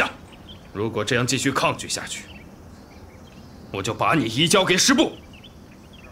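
A young man speaks in a calm, stern voice.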